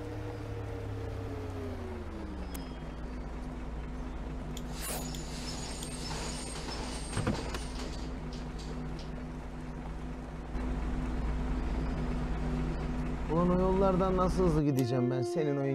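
A bus engine hums steadily, then winds down and stops.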